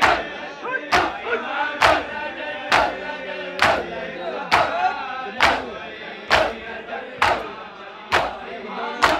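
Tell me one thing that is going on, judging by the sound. Men chant together loudly between the slaps.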